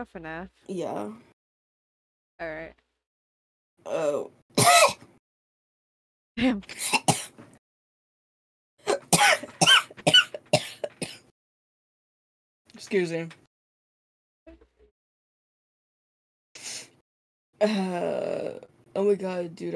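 A young woman talks animatedly into a close microphone, in short bursts with pauses.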